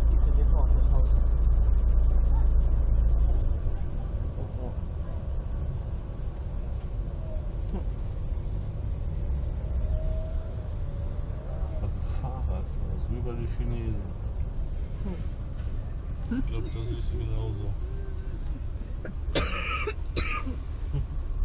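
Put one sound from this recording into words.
A vehicle engine rumbles steadily, heard from inside the vehicle.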